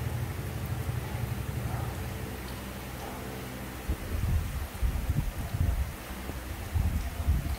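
A young macaque chews and slurps juicy mango.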